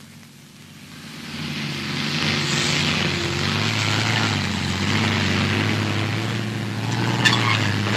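A car engine rumbles as the car approaches, growing louder.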